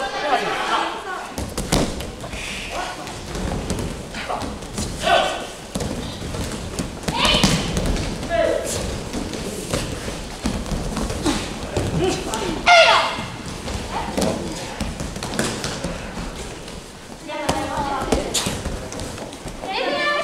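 Bodies thump and roll on padded mats in a large echoing hall.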